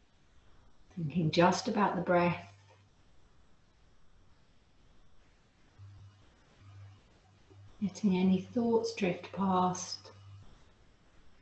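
A young woman speaks calmly and softly through a microphone, pausing between phrases.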